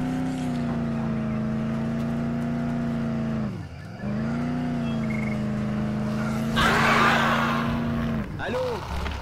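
A car engine hums steadily, dipping briefly in pitch before picking up again.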